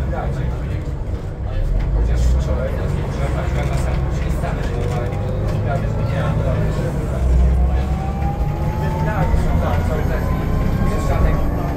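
A bus motor whines, rising in pitch as the bus speeds up.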